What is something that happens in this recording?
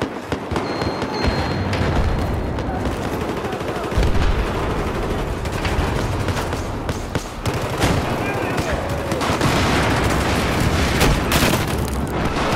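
Gunfire cracks and rattles in quick bursts.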